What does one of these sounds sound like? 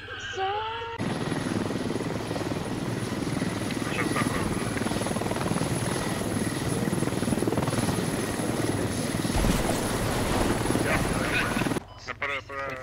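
A helicopter's rotor roars loudly overhead.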